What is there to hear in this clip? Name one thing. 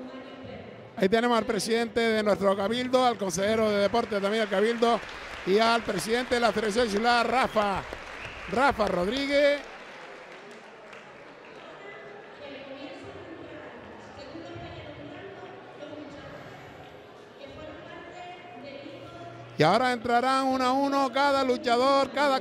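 A man speaks loudly over a loudspeaker in a large echoing hall.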